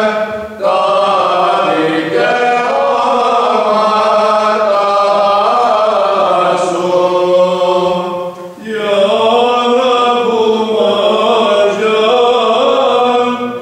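A choir of men chants in slow, sustained tones, echoing in a large hall.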